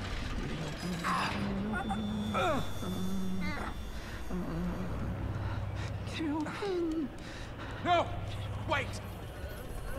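A man mutters tensely under his breath.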